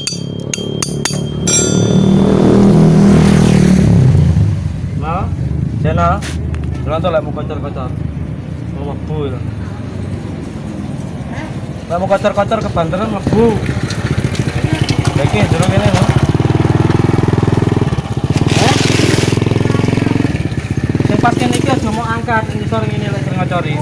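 Metal parts click and clank as a small engine is worked on by hand.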